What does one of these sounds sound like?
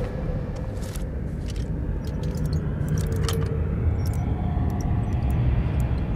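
A lock pick scrapes and clicks inside a door lock.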